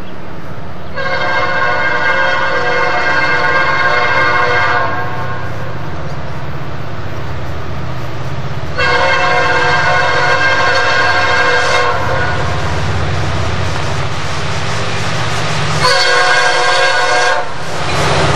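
A diesel freight locomotive sounds its air horn in long blasts as it approaches.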